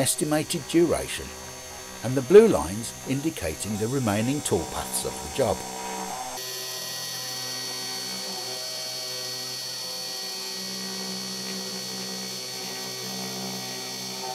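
A milling machine's spindle whines steadily as it carves into a board.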